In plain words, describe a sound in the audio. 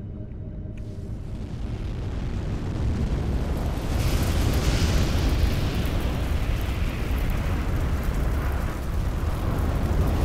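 A deep rushing roar swells and surges as a burst of energy erupts.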